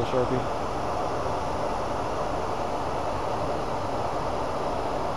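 A lathe spindle hums steadily as it turns.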